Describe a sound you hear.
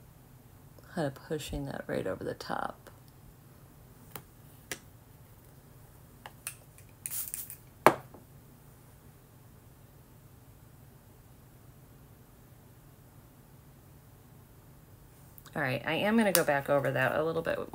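A woman speaks briefly and calmly close by.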